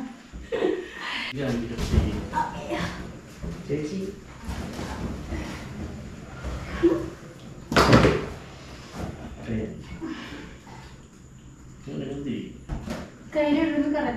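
A young man talks and laughs nearby.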